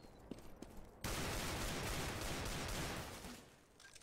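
A pistol fires several rapid shots.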